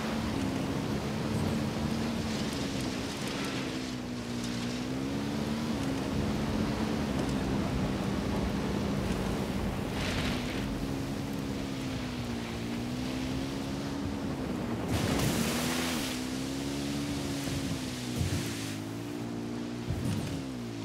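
A motorcycle engine drones steadily, its pitch rising and falling.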